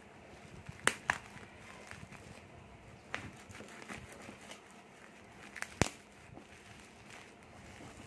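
Scissors snip through plastic.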